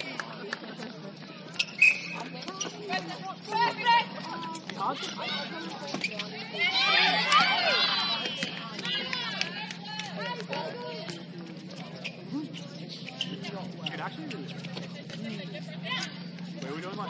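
Young women players shout and call to each other across an outdoor court.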